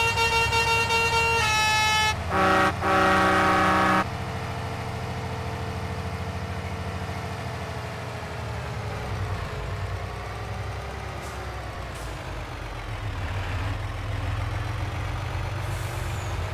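A heavy truck engine rumbles steadily as the truck drives along.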